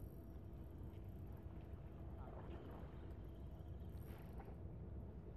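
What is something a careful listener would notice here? Gentle waves lap against a stone pier.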